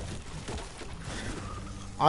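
A pickaxe chops into wood.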